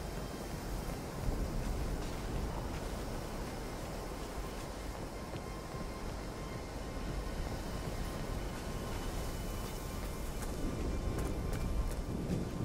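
Footsteps crunch softly on gravel and boards.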